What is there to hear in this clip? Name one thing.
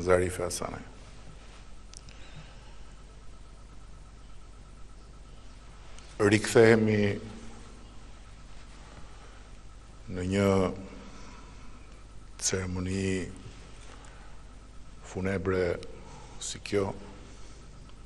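A middle-aged man speaks calmly into a microphone, in short phrases with long pauses.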